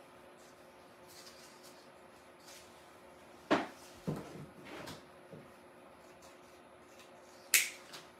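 Leaves and stems rustle and snap in a woman's hands.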